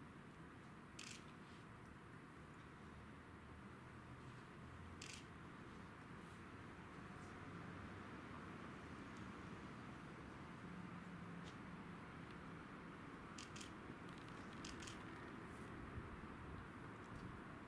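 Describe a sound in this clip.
Small glass jars clink softly on hard ground.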